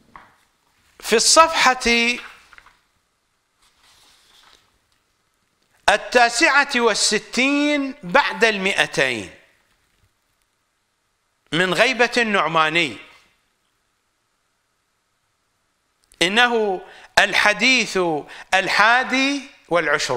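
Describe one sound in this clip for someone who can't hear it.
An elderly man reads aloud close to a microphone, in a slow chanting voice with pauses.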